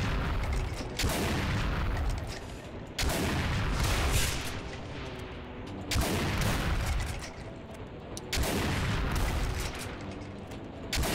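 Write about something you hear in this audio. A shotgun fires loud, booming blasts every few seconds.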